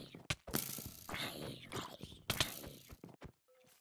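A game zombie groans nearby.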